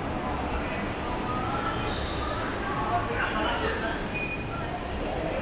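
Distant voices murmur through a large echoing hall.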